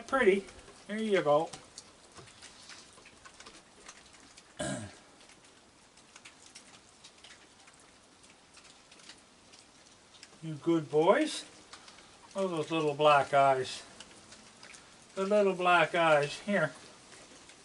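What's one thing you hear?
A man talks softly and warmly nearby, in short bursts.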